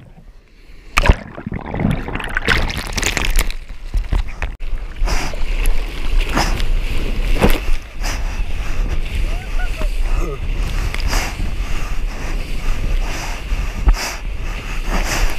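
Waves splash and churn around a surfboard.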